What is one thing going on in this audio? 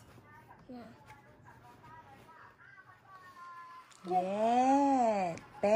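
Plastic packaging rustles and crinkles as a small child handles it.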